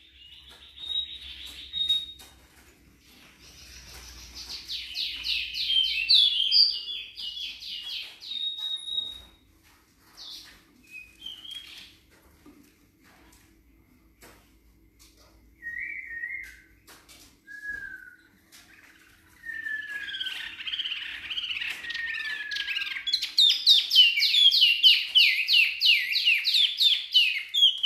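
A small songbird sings rapid, high trilling phrases close by, with pauses in between.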